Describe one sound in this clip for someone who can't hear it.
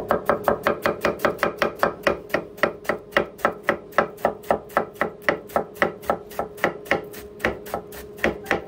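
A knife chops lettuce on a cutting board in quick, steady strokes.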